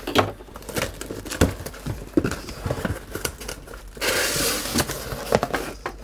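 Cardboard flaps scrape and thump.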